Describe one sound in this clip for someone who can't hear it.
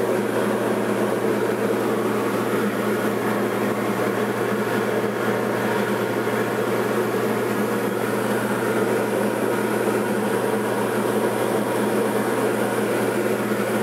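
A light propeller plane's engine drones steadily in flight, heard from inside the cabin.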